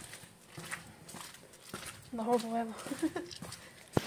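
Shoes step on wet paving stones.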